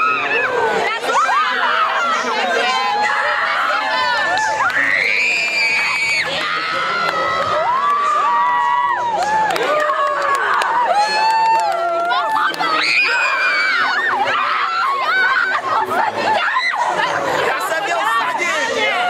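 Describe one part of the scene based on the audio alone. A young crowd screams and cheers loudly all around.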